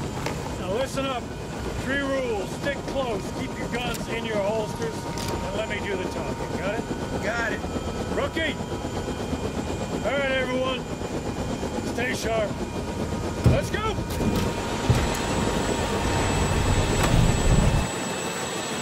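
An engine rumbles low and steady.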